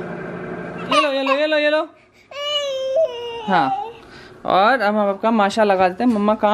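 A toddler babbles and squeals in a high voice.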